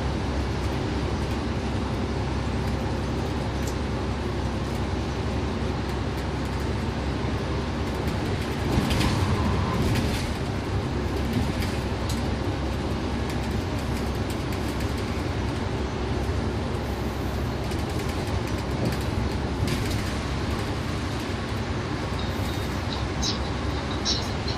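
A bus engine hums steadily as the bus drives along a highway.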